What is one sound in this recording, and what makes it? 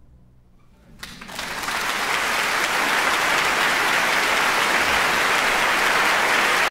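A large audience applauds loudly in a big hall.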